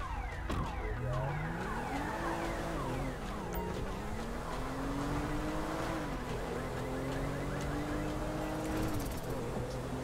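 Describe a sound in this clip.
A car engine revs up and down as a car drives off.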